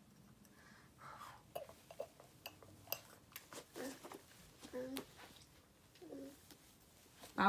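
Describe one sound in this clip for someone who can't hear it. A toddler girl babbles and squeals close by.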